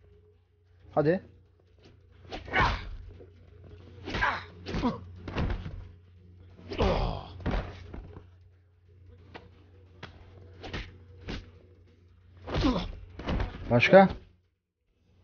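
Punches land with heavy, dull thuds.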